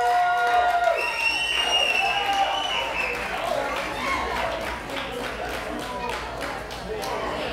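A live band plays amplified music in a large, echoing room.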